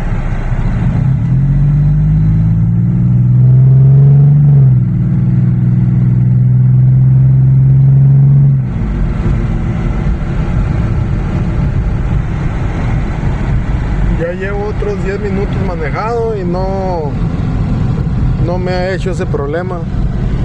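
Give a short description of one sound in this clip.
Tyres rumble on the road inside a moving car.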